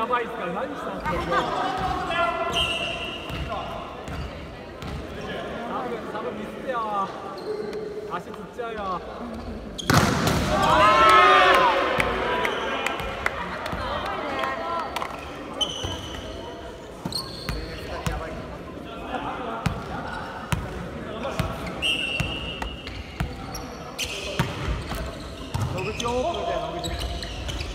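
Young men call out and shout to each other, echoing in a large hall.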